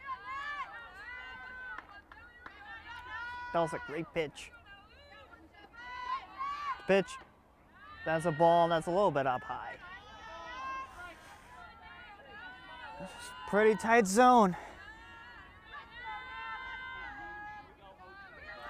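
Young women and girls chant and cheer loudly outdoors.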